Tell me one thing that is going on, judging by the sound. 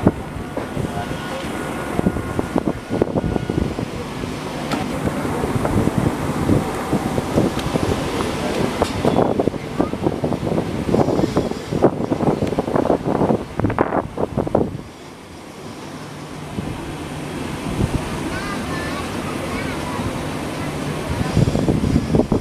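A passenger train's wheels clatter and rumble over the rails at speed, heard from an open doorway.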